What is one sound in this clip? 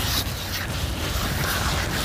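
A gloved hand rubs against a rough stone.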